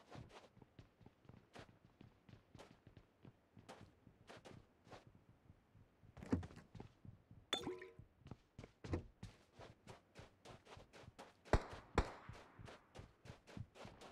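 Quick footsteps thud on hard ground and wooden floors.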